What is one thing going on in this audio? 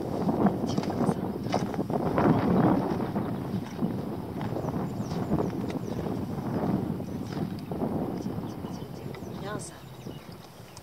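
Wind blows in strong gusts across the open air.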